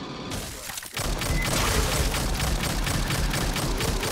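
An automatic gun fires rapid bursts.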